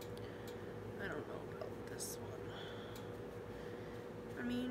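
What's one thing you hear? A young woman speaks quietly and close to a microphone.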